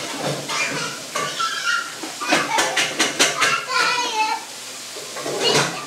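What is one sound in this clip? Oil sizzles and crackles in a deep fryer.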